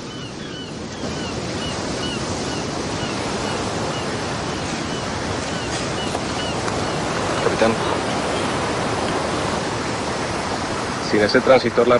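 Waves wash against rocks along the shore.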